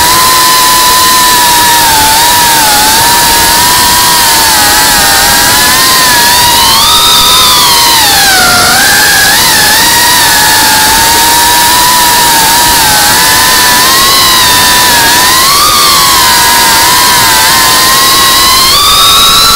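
A small drone's motors whine loudly and shift up and down in pitch as it flies.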